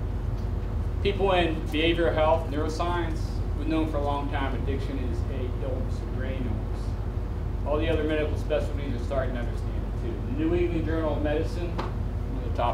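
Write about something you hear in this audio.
A man speaks calmly, heard from a distance.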